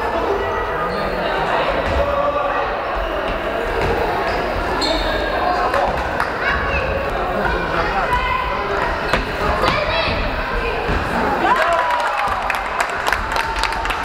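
Young players shout and call out across a large echoing hall.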